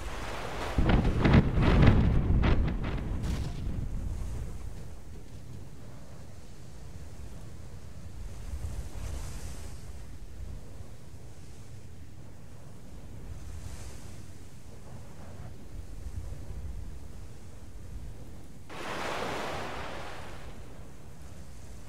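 Sea waves wash gently and steadily.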